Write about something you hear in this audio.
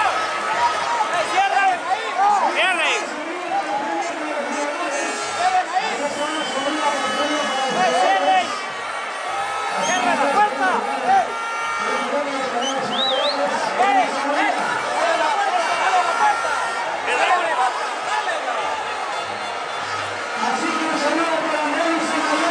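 Men on the field shout and sing in celebration nearby.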